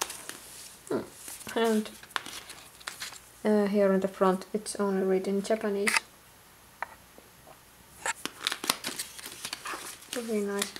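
Small plastic tubes click and rattle as a hand lifts them from a box.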